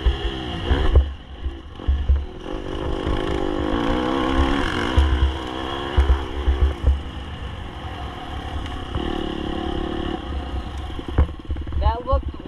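Dirt bike engines rev and buzz loudly, close by.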